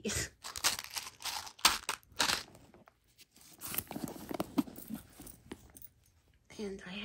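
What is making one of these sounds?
Items rustle and clink as a hand rummages through a bag.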